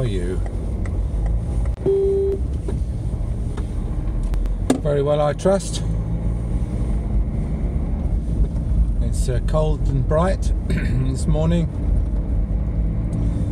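A car engine hums steadily and low.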